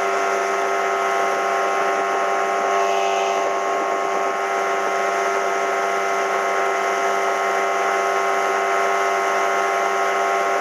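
A boat motor drones steadily at speed.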